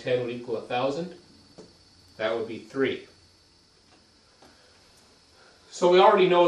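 A man speaks calmly and explains, close to the microphone.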